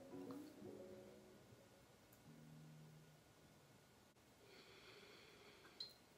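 A young woman sips and swallows a drink close by.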